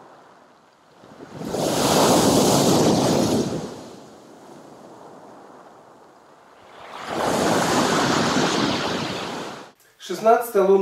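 Waves crash against a pier and wash over pebbles.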